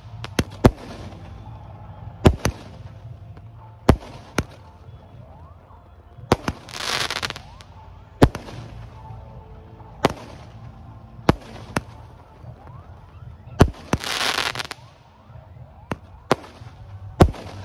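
Fireworks burst with loud, sharp bangs that echo.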